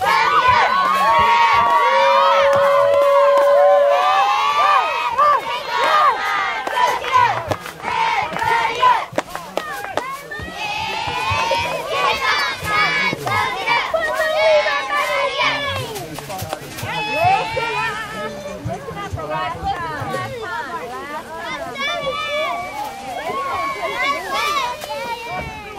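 Young girls chant a cheer together loudly and close by.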